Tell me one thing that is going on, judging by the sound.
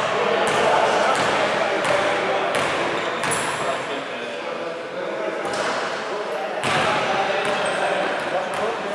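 Players' sneakers squeak and thud on a hardwood court in a large echoing gym.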